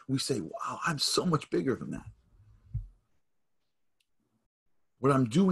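A man speaks with animation through a microphone on an online call.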